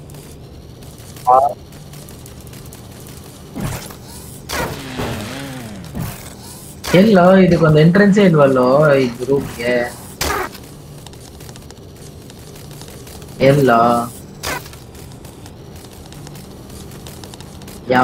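A small robot's metal legs tap and clatter on hard surfaces.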